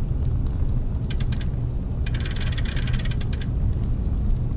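A clock's hands ratchet and click as they are turned by hand.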